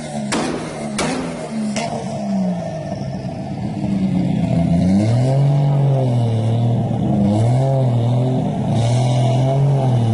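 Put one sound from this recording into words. A sports car engine idles roughly and revs loudly, rising and falling.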